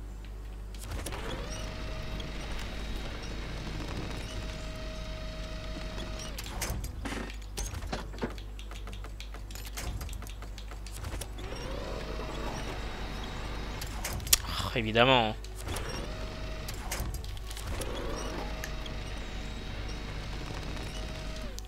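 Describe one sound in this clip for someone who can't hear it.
A winch motor whines in steady bursts.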